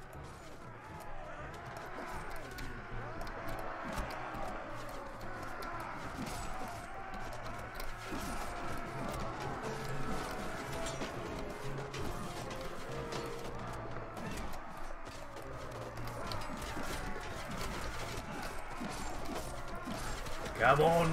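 A crowd of men shouts and yells in battle.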